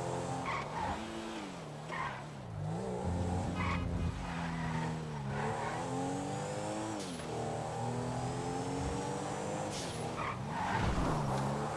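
A car engine revs and changes pitch as it speeds along.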